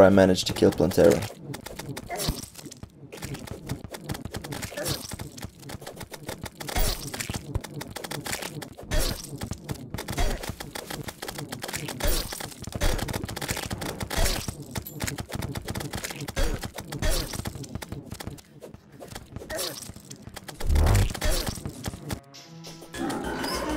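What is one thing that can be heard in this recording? Rapid game weapon shots and hits crackle and pop without pause.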